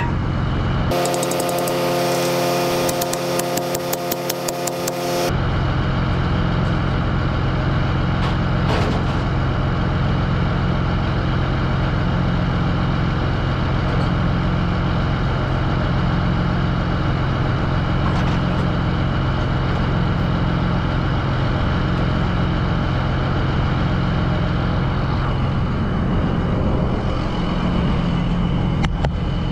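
A large diesel engine idles steadily close by.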